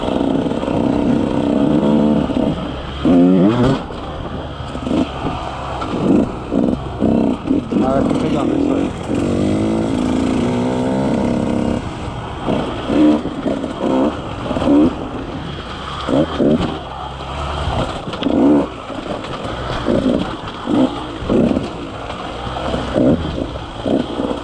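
Tyres crunch over dirt and rocks.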